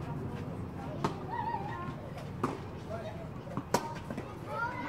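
A tennis racket strikes a ball with sharp pops, back and forth outdoors.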